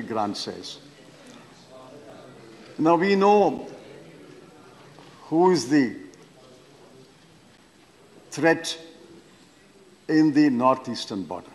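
An elderly man speaks forcefully into a microphone in bursts, pausing between phrases.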